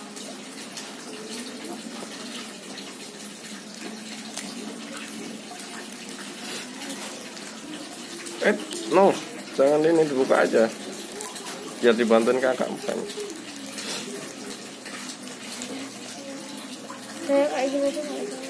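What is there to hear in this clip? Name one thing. Soft slime squishes and squelches under pressing hands.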